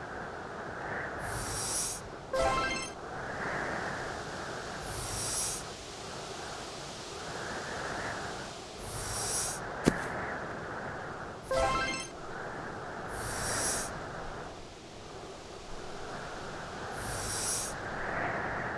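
Snowballs slide across ice with a short hissing whoosh.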